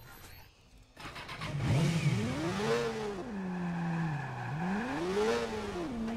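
A motorcycle engine revs up and down loudly.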